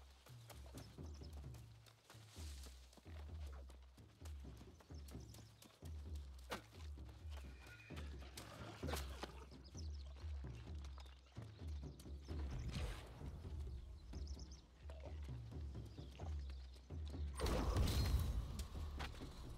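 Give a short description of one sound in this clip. Footsteps patter quickly over rock and stone.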